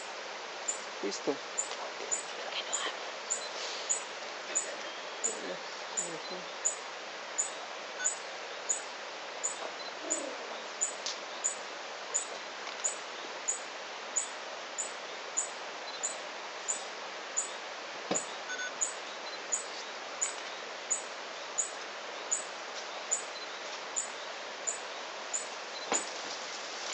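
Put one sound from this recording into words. A small bird sings a high, sharp chirp over and over at a steady, quick pace.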